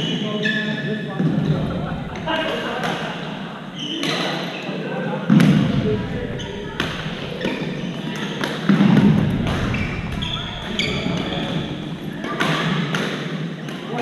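Young men and women call out and chatter in a large echoing hall.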